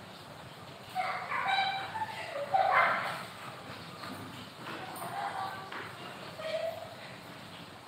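A woman's voice sings or speaks nearby.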